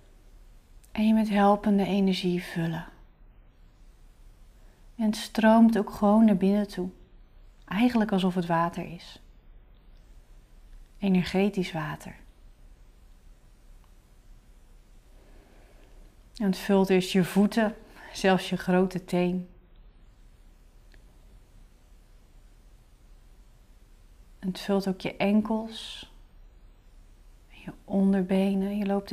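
A young woman speaks calmly and slowly into a close microphone, in short phrases with pauses.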